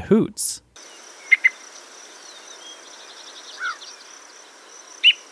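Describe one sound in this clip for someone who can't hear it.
A yellow-breasted chat calls.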